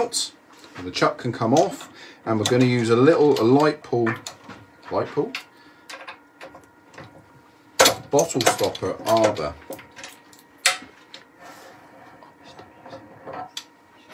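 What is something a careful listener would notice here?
Metal parts of a lathe chuck click and clank as a hand turns them.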